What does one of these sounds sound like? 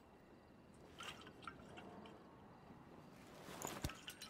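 A small metal object clinks as it is handed over.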